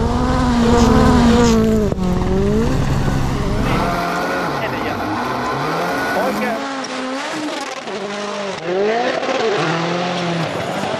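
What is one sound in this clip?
Tyres crunch and skid on loose gravel.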